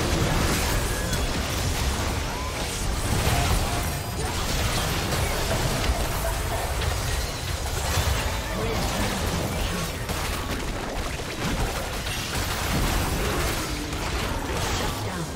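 Video game combat effects crackle, whoosh and boom without a break.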